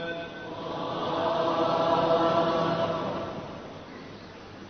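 A man chants a long, sustained melodic recitation into a microphone.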